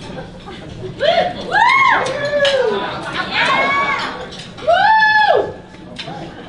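A man sings loudly through a microphone, holding long notes.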